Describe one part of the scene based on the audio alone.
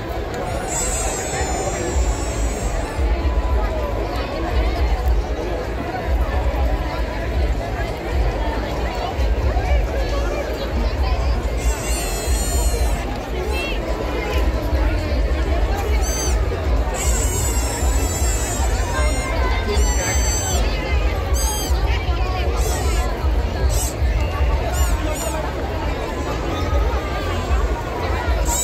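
A large crowd chatters loudly all around, outdoors.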